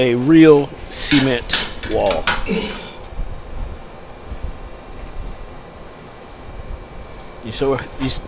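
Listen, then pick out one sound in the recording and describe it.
A metal cover plate scrapes lightly against a tiled wall.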